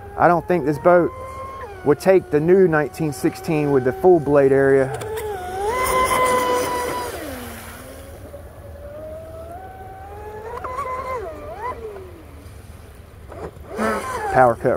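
A small boat motor whines loudly, revving up and down.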